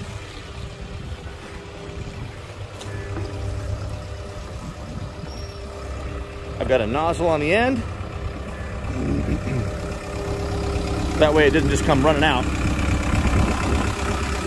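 An engine idles steadily nearby.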